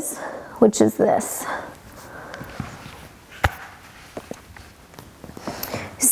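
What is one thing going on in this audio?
Fabric rustles softly as a woman lies back on cushions.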